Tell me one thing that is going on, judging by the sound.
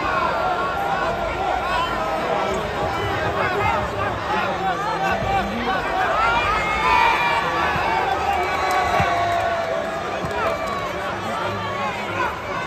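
A large crowd shouts and cheers.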